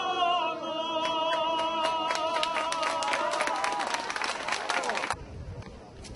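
People in a crowd clap their hands rapidly.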